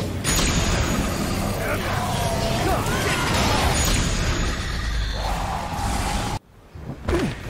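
Loud game combat sounds crash and clang with magical bursts.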